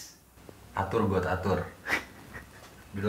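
A young man speaks up close.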